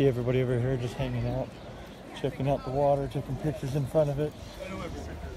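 Young women chat nearby outdoors.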